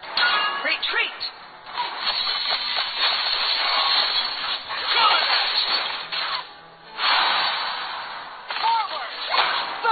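Game spell effects whoosh and crackle in bursts during a fight.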